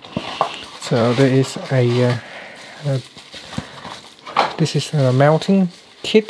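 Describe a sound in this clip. Bubble wrap crinkles in handling hands.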